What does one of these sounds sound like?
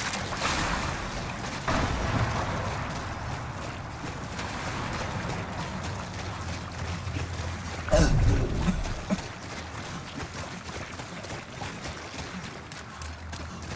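Footsteps wade through water.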